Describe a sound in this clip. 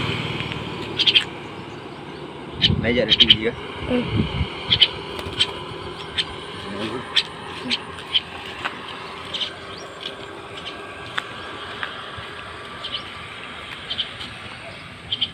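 A small bird chirps in short calls.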